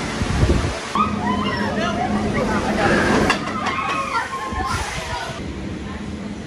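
Riders cheer and shout with excitement close by.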